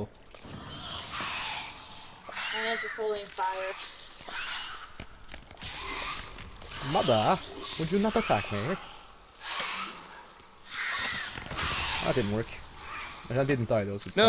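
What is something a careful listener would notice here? A fire crackles and hisses.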